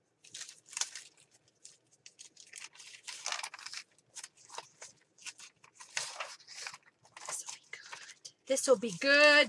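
Paper rustles and slides as sheets are handled.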